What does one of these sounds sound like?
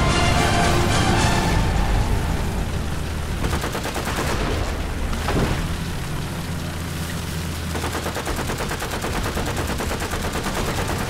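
Tank tracks clatter and squeak as the tank rolls along.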